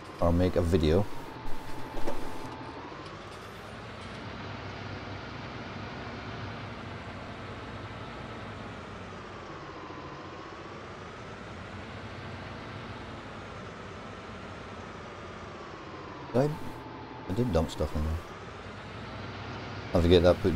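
A tractor engine hums steadily, its pitch rising and falling.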